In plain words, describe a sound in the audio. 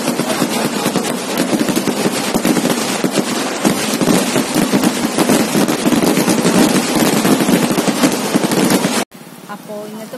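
Fireworks crackle and bang rapidly and loudly.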